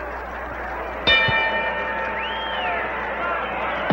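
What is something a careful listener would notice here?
A boxing bell rings once.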